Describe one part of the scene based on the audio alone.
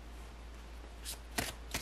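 Playing cards riffle and shuffle in a hand.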